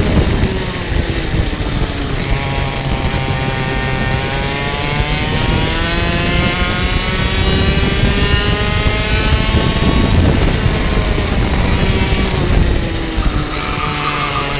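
A small kart engine buzzes loudly up close, its pitch rising and falling as it speeds up and slows down.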